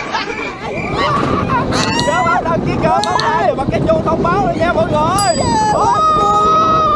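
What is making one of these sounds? A young man shouts and laughs close by.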